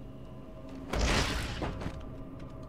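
A heavy body lands with a thud on a metal grate.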